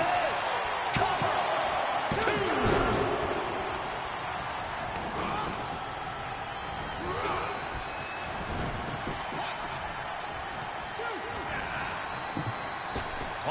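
Heavy bodies slam onto a wrestling ring mat.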